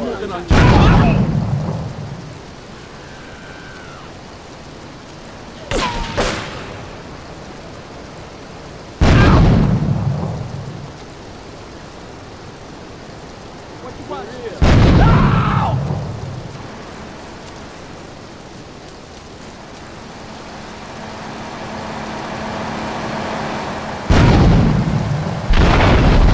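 Explosions boom loudly nearby, again and again.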